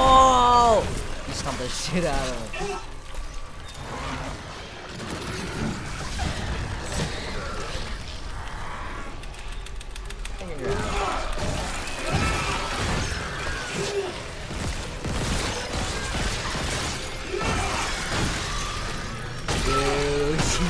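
Two young men talk and exclaim excitedly close to a microphone.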